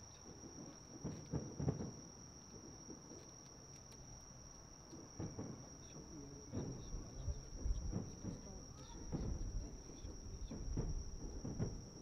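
Distant fireworks boom and thud in a steady series.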